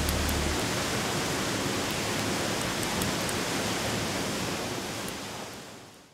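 A bonfire crackles and pops.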